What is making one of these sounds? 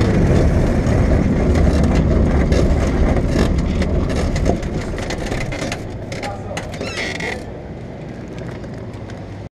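A small aircraft engine rumbles loudly close by, then drops to a quieter idle.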